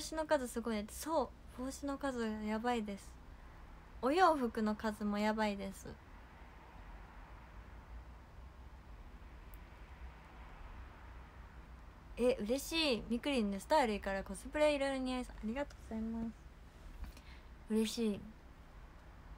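A young woman talks calmly and cheerfully close to a microphone.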